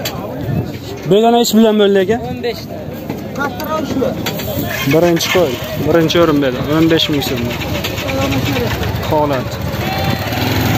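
Men talk loudly nearby outdoors.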